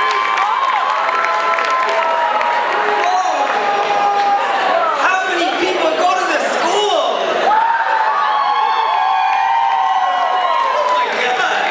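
A group of young women and men sings together, heard through loudspeakers in a large hall.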